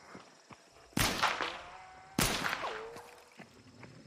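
A handgun fires sharp shots.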